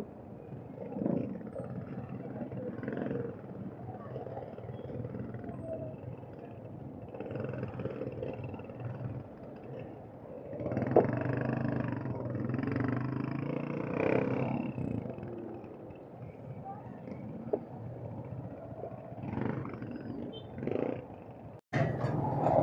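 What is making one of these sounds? City street traffic rumbles close by.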